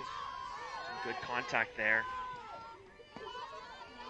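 A softball smacks into a catcher's mitt.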